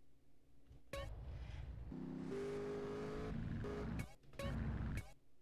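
A car engine hums and revs as a car drives off.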